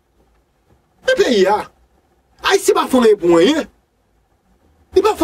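A man sings in short, bending phrases with pauses between.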